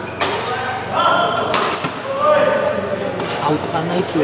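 A racket strikes a shuttlecock with a sharp snap.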